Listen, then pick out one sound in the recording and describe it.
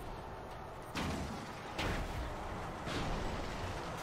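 Explosions boom and crash in a video game.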